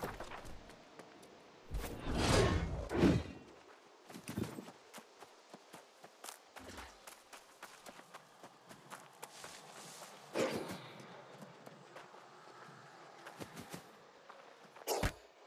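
Footsteps patter quickly over soft ground.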